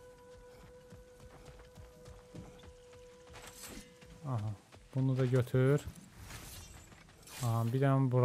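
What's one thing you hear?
Heavy footsteps crunch on rocky ground.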